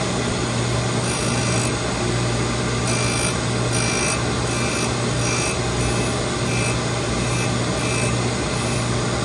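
A grinding wheel scrapes against metal in short repeated passes.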